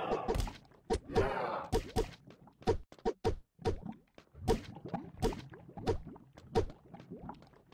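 Heavy punches thud in quick succession.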